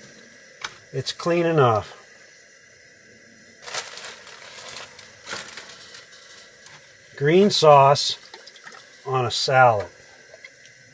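An adult man speaks calmly close by.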